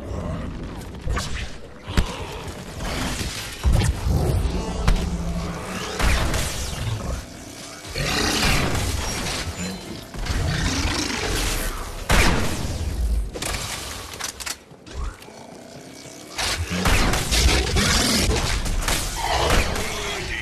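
A video game energy blast whooshes and bursts.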